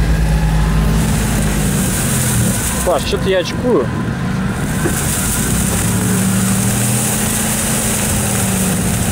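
Tyres roll and swish over dry grass.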